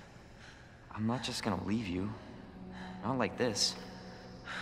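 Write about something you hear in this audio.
A young man answers softly and earnestly.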